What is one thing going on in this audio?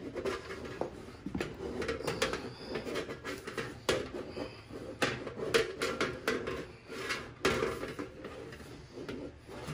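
Keys of a brass horn click under fingers.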